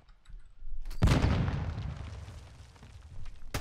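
A grenade explodes with a loud boom.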